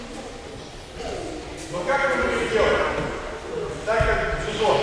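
A man speaks loudly and clearly to a group in an echoing hall.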